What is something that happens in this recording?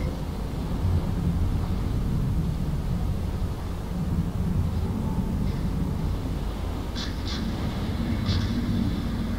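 Water washes against a ship's hull.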